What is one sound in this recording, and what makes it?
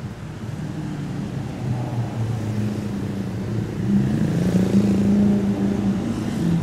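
A sports car's engine roars loudly as it approaches.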